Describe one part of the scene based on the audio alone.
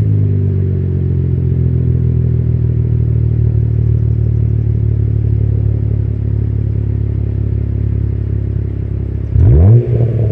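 A car engine idles with a deep, steady exhaust rumble close by.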